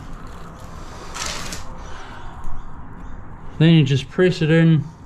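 Gloved hands brush and rub against a rough, gritty surface.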